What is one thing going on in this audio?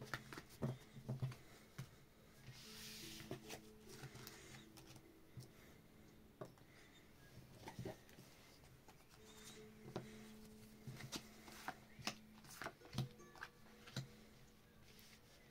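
Playing cards shuffle and flick softly.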